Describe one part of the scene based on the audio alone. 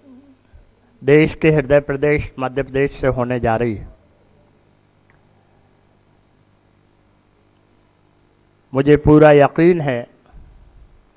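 A middle-aged man speaks emphatically into a microphone, in bursts with pauses.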